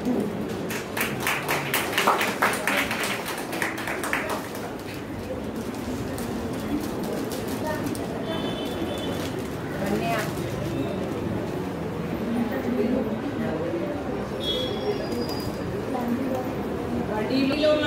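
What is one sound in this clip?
Several women chat and laugh nearby in a room.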